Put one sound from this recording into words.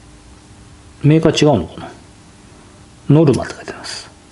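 A middle-aged man speaks calmly close by, in short phrases.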